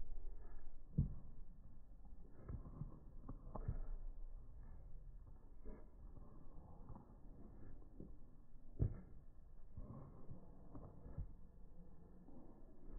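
A cow's hooves thud and scuff on dry dirt as it walks.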